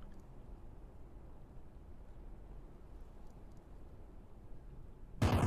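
A low, steady rumble drones softly.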